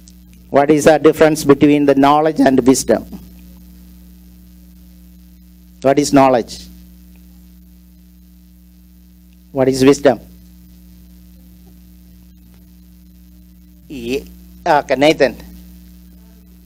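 A middle-aged man speaks with feeling into a microphone, in short bursts with pauses, heard through a loudspeaker.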